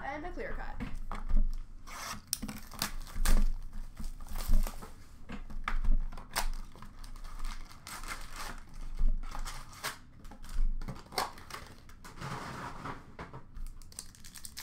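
Foil card packs rustle and crinkle as hands handle them.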